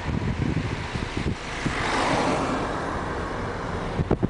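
A van passes by close with a rushing swell.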